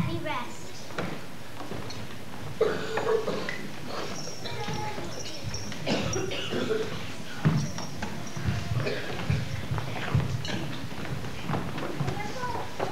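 Children's voices echo in a large hall.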